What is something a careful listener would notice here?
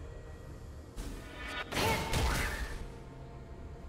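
A loud magical burst whooshes and crackles.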